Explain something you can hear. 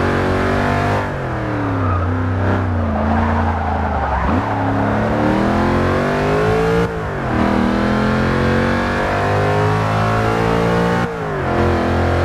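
A supercharged V8 supercar's engine dips briefly at each gear change.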